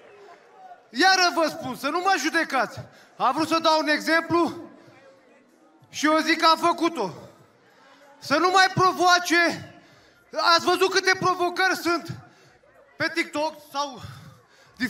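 A man speaks loudly and with animation into a microphone, heard through loudspeakers in a big hall.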